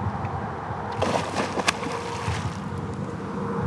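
A fish splashes loudly at the water's surface.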